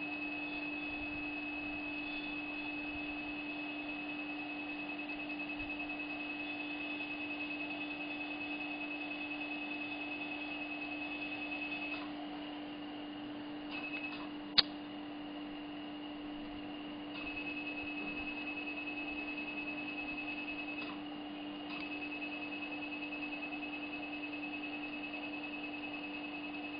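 A dental scaler whines steadily in a mouth, stopping briefly now and then.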